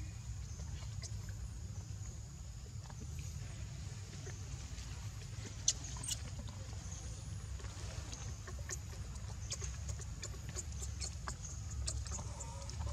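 A baby monkey squeaks and whimpers in short, high cries.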